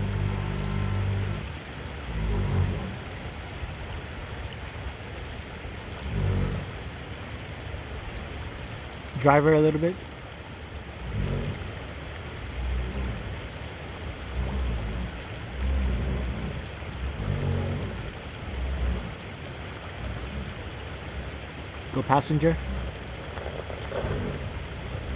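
An engine rumbles at low speed, revving in short bursts.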